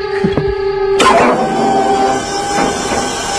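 An overhead crane hums.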